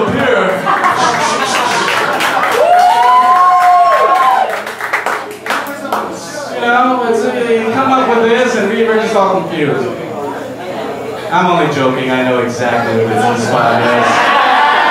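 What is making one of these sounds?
A man beatboxes and vocalises close into a microphone, heard through loudspeakers.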